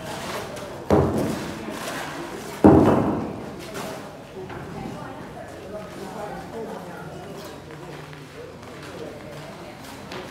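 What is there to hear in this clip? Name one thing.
A hand tool scrapes and knocks on wet cement nearby.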